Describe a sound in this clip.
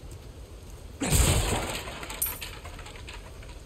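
A wooden barrel smashes apart with a loud crack.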